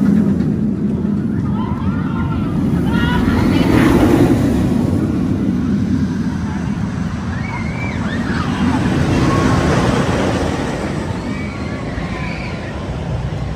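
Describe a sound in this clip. A roller coaster train roars along its track.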